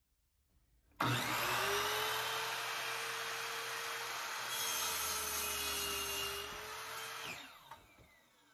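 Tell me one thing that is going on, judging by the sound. A power miter saw whirs loudly as it cuts through wood.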